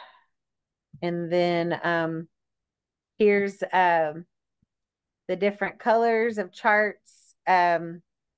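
A woman speaks calmly through a computer microphone, as on an online call.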